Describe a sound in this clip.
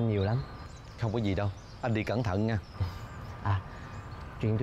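A man speaks in a calm, friendly voice, close by.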